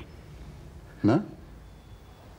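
A second middle-aged man answers briefly in a low voice.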